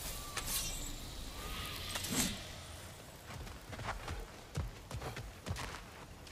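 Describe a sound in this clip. Heavy footsteps fall on earth.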